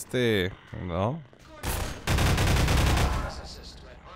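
A gun clanks as it is swapped and readied.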